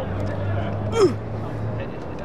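A soccer ball is kicked with a sharp thud.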